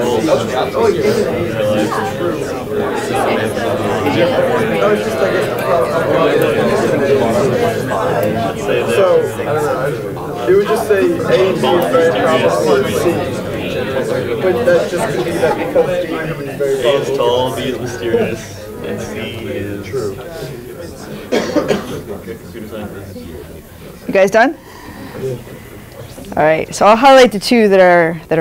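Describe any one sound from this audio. A woman speaks calmly into a microphone in a room that echoes a little.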